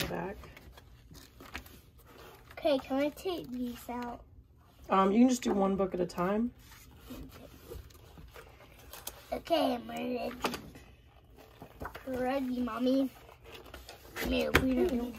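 Paper pages rustle and flip as a book is leafed through.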